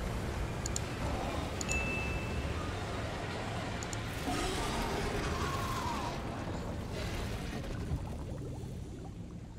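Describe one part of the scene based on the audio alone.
Thick liquid splashes and churns as a large creature thrashes in it.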